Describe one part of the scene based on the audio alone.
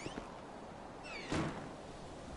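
Heavy doors swing open.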